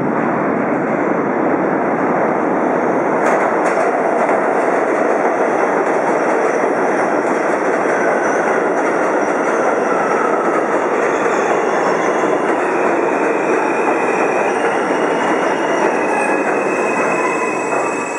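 A subway train rumbles and clatters into an echoing underground station.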